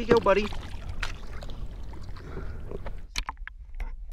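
Water splashes beside a boat as a fish is let go.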